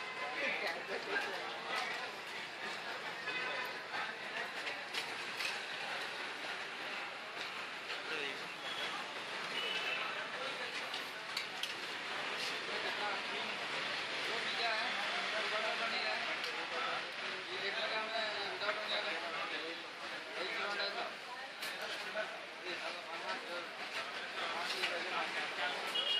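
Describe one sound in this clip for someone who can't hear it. Batter sizzles on a hot griddle.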